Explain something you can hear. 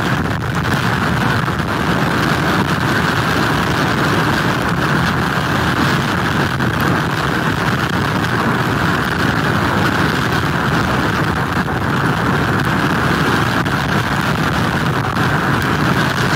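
Heavy surf crashes and roars.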